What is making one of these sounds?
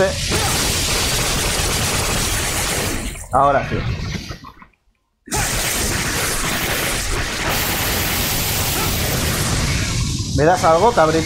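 Blades whoosh and clash in a loud, hectic fight.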